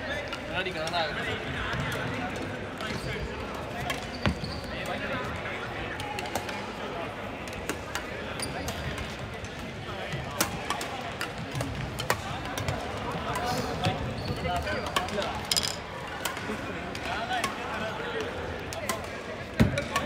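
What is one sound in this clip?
Shuttlecocks are struck with rackets, with sharp pops throughout a large echoing hall.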